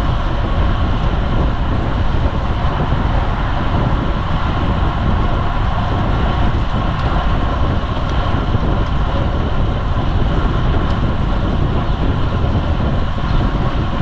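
Wind rushes loudly and steadily past, outdoors at speed.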